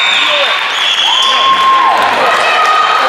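A referee's whistle blows a short blast.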